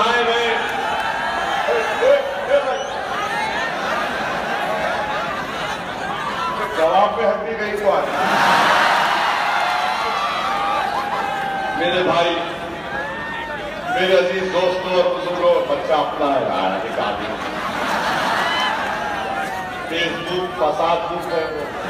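A man speaks forcefully through a loudspeaker outdoors, echoing.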